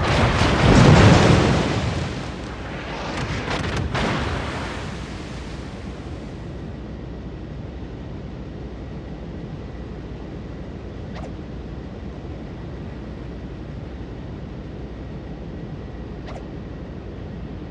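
Water rushes steadily along a moving ship's hull.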